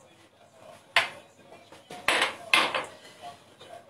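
Glass and utensils clink on a counter.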